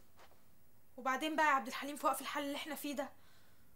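A young woman speaks urgently nearby.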